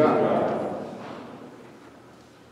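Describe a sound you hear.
A woman speaks through a microphone in a large echoing hall.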